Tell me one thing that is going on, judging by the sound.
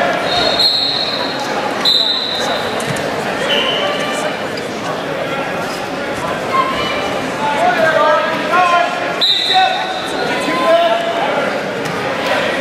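Wrestlers' shoes squeak sharply on a mat.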